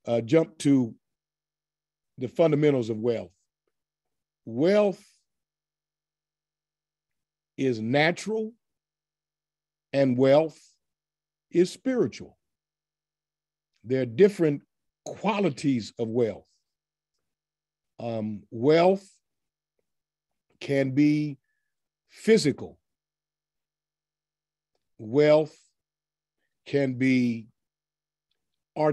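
A middle-aged man speaks calmly into a nearby microphone, in short phrases with pauses.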